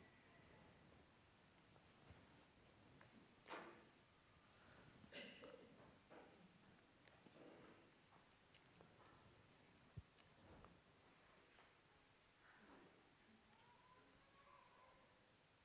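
An elderly man speaks calmly, heard from a distance in an echoing hall.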